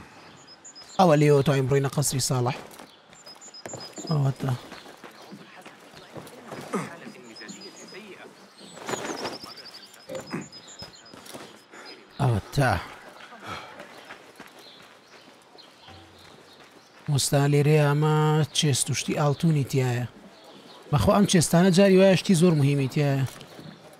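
A man talks with animation into a microphone, up close.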